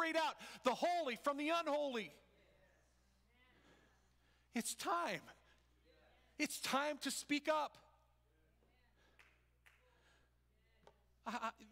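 A man preaches with animation through a microphone in an echoing hall, shouting in bursts with long pauses.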